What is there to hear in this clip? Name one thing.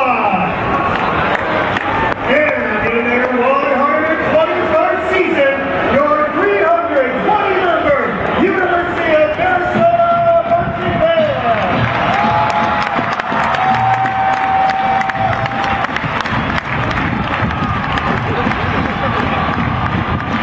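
A crowd cheers and murmurs across the stands.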